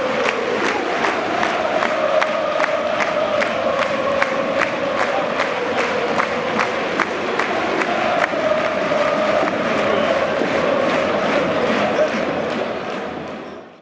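A stadium crowd claps in a steady rhythm.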